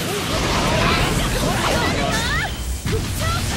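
Fire roars and whooshes in a blast.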